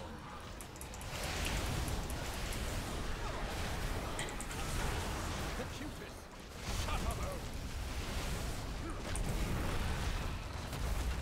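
Battle sounds of spells and blows crash and whoosh continuously.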